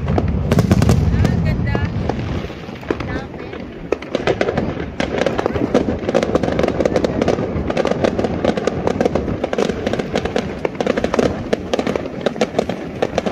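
Fireworks crackle and pop rapidly close by.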